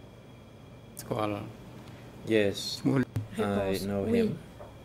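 An elderly man speaks slowly into a close microphone.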